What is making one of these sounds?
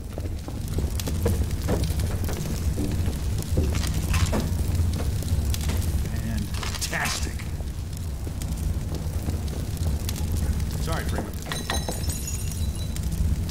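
A small fire crackles and hisses nearby.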